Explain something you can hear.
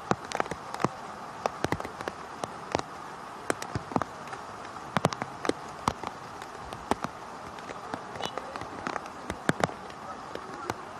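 Players call out faintly across a wide open field.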